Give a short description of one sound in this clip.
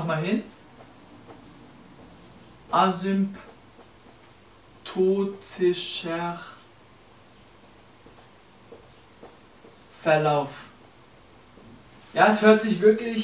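A young man speaks calmly in short phrases nearby.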